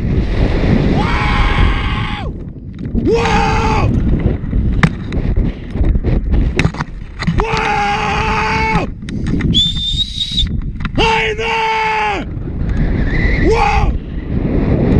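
A young man screams with excitement while falling.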